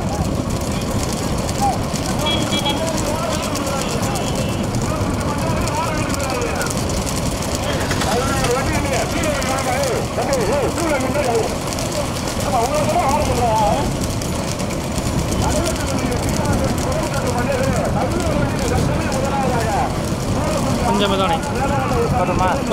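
Bull hooves clatter on the road.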